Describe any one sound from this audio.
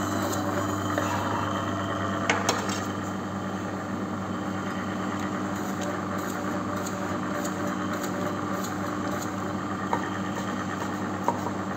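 A slicer blade whirs as it cuts through meat.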